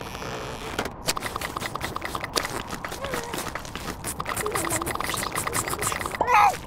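A seal sniffs rapidly at a seal pup.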